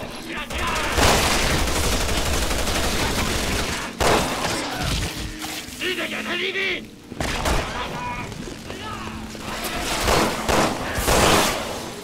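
A pistol fires loud shots that echo.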